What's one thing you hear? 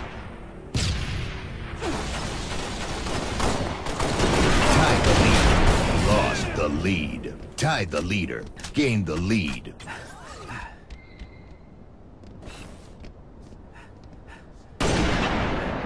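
A rifle fires a loud, booming shot.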